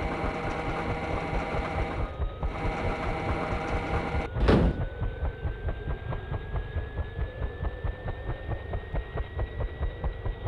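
A helicopter engine whines and slowly rises in pitch.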